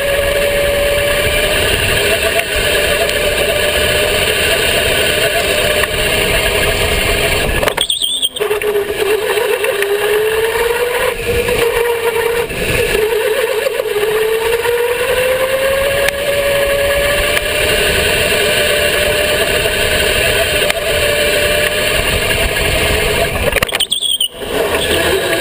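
A go-kart engine whines steadily close by, rising and falling in pitch.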